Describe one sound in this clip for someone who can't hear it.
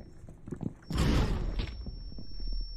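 A spiked mace smashes into a player with a heavy thud.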